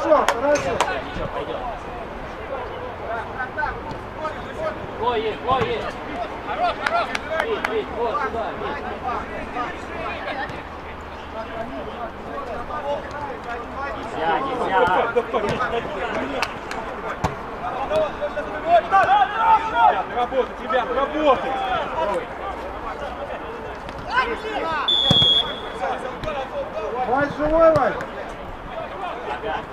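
Young men shout to each other outdoors at a distance.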